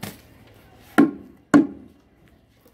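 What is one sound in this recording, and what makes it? A basin of wet cement is dumped onto the floor with a thud.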